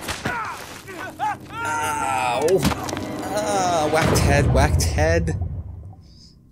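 A man shouts urgently in a game's dramatic voice acting.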